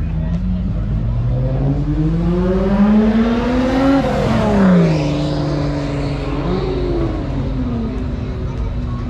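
A car accelerates hard past, its engine revving up.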